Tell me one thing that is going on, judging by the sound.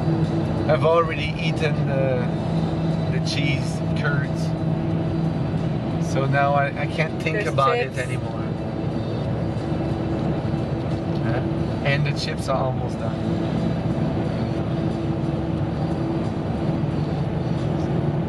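An engine hums steadily while driving along a road.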